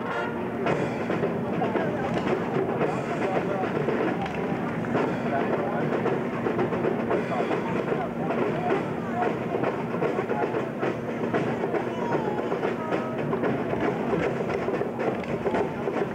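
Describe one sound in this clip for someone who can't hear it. A marching band plays brass and drums outdoors.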